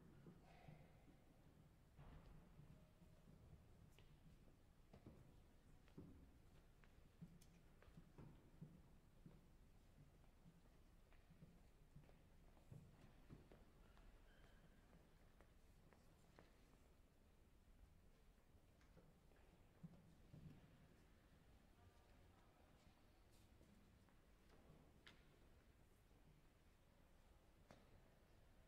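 Footsteps shuffle softly on a stone floor in a large echoing hall.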